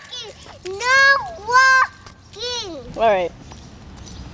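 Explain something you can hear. A young girl calls out in a high, singing voice close by.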